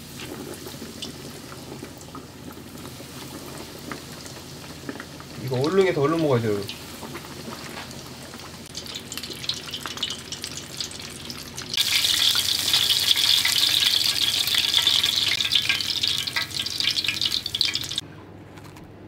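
Hot oil sizzles and crackles as food fries.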